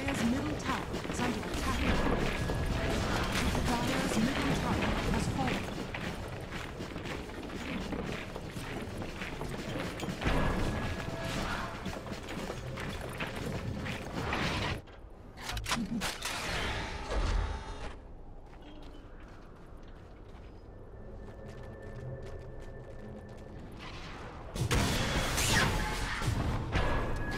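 Game battle sounds clash with spell blasts and hits.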